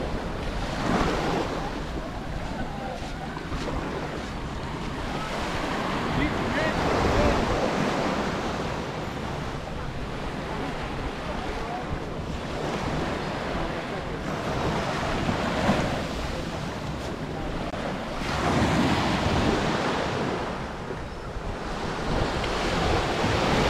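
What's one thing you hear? Waves wash and break on the shore in surges.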